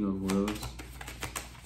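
A man speaks softly, close to the microphone.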